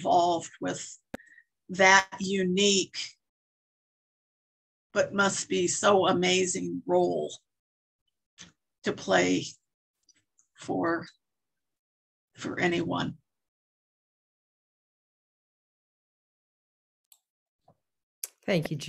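An elderly woman speaks calmly in short phrases over an online call.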